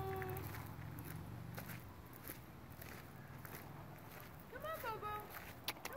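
A donkey's hooves step softly on dirt.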